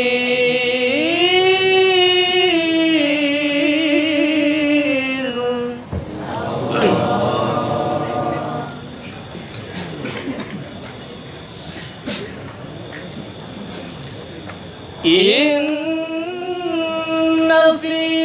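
A young man chants a long, drawn-out melody through a microphone, echoing loudly.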